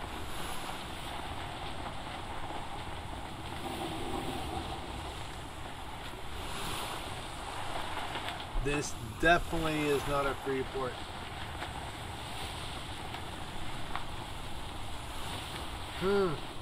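Wind blows steadily over open sea.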